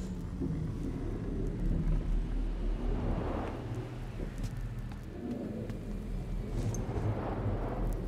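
Footsteps tread on wooden boards.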